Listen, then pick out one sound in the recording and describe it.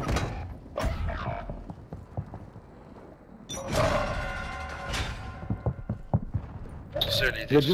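Footsteps tread on hard stairs.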